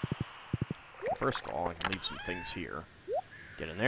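A menu opens with a short chime.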